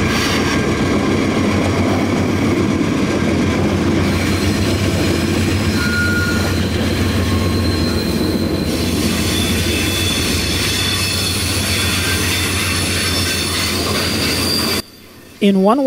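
A long freight train rumbles steadily past nearby.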